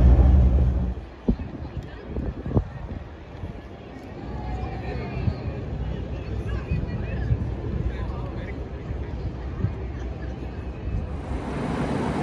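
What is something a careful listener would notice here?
A crowd murmurs outdoors in a busy square.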